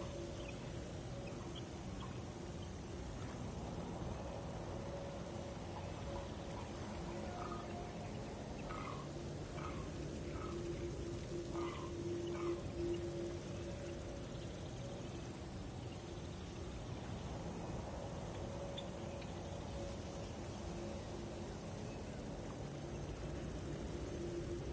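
A low, eerie magical hum drones steadily.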